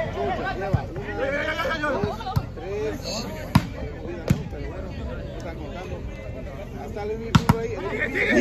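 A volleyball is struck by hand with sharp slaps.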